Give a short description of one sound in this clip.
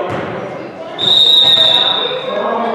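A referee's whistle blows one sharp blast.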